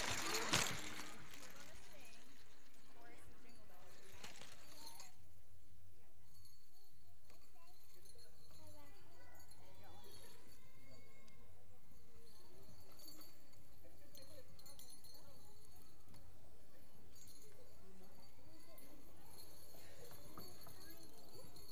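Young children murmur and chatter quietly.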